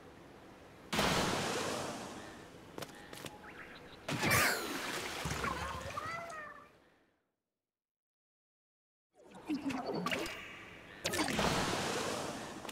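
Ink splashes and sprays as a game character shoots.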